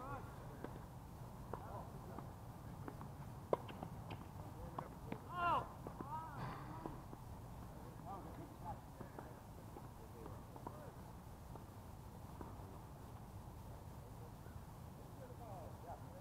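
Tennis balls pop off rackets in sharp hits.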